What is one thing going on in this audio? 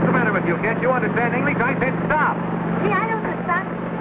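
A young boy talks loudly and excitedly.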